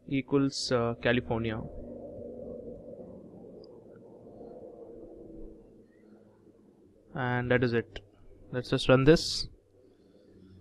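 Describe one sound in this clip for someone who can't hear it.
A young man speaks calmly into a close microphone.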